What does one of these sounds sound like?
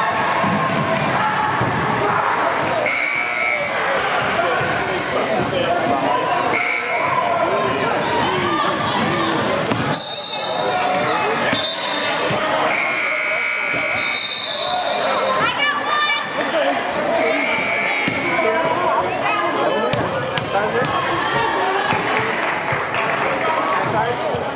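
A crowd of people chatter throughout a large echoing gym.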